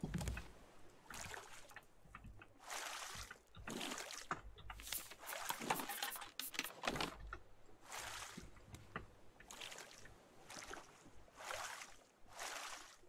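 A paddle splashes through water in steady strokes.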